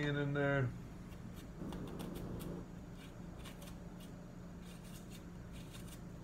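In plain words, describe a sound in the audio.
A knife scrapes and clicks against an onion.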